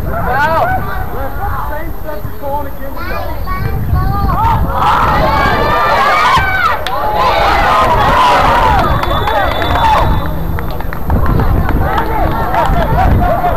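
Young players shout to each other in the distance.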